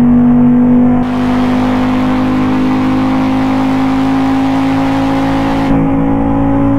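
Tyres roar on a road, louder for a few seconds.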